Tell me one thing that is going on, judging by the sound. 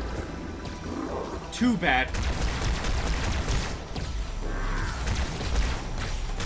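A plasma rifle fires rapid zapping bursts.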